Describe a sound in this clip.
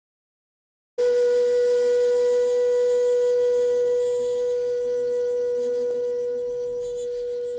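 A bamboo flute plays a long, steady low note.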